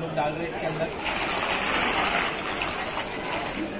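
Dry grains and nuts rattle as they pour into a big pot.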